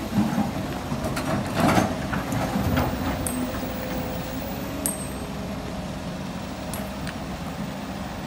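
An excavator bucket scrapes and digs into rocky soil.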